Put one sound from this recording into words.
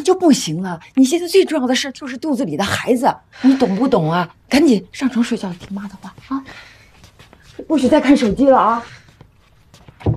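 An older woman speaks firmly, close by.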